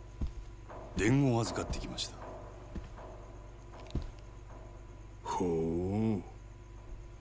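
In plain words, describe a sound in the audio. A man speaks in a low, gruff voice.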